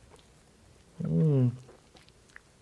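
A man hums with pleasure while chewing.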